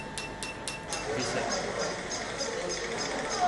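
A crowd murmurs.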